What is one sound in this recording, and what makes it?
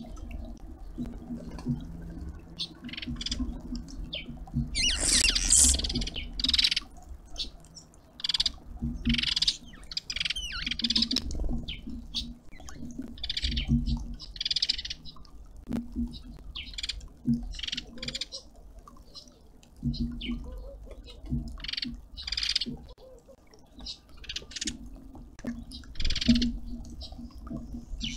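Many small birds chirp and call close by outdoors.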